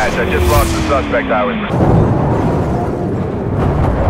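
A car crashes with a loud metallic smash.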